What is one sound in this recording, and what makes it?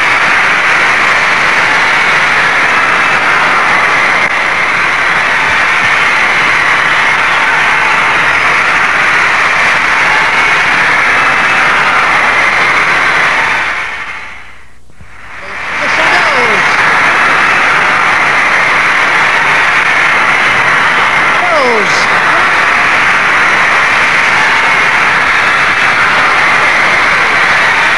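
A large crowd screams loudly and continuously in a big echoing hall.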